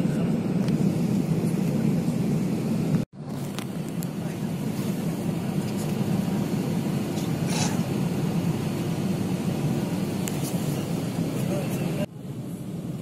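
An aircraft cabin hums with a steady, low engine drone.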